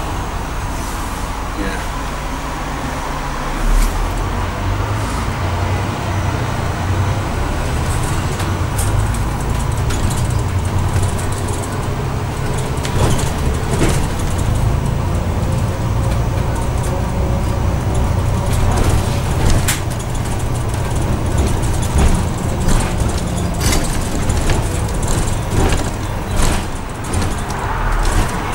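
A bus engine rumbles low and steady as the bus drives along.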